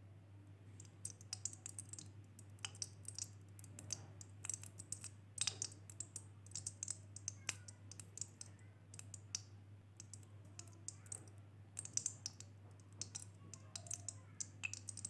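Fizzing powder crackles and bubbles in a bowl of water.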